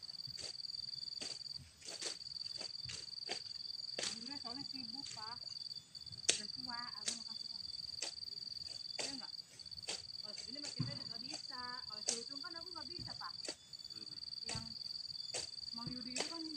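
A hoe chops into soil and weeds with regular thuds.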